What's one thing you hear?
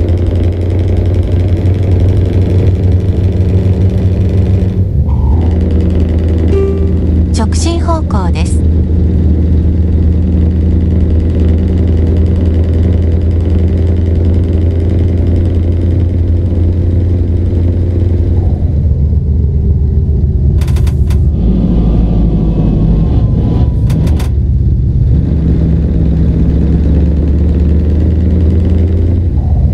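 A truck engine hums steadily at a low pitch as it drives.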